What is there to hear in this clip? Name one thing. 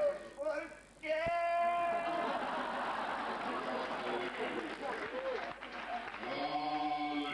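A violin plays in a large tent.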